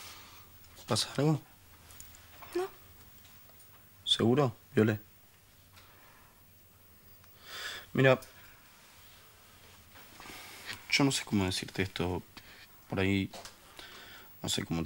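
A young man speaks quietly and seriously.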